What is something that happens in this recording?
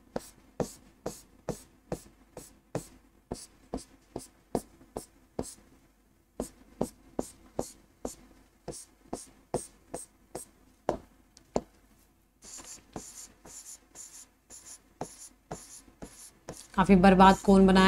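A marker taps against a board in quick strokes.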